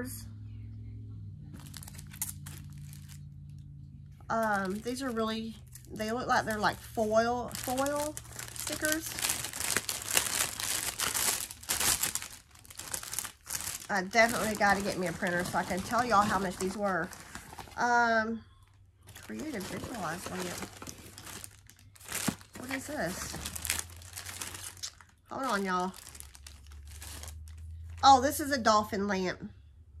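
Plastic packaging crinkles and rustles in a woman's hands.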